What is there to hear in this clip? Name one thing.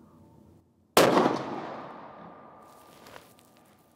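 A rifle fires a loud shot that echoes away outdoors.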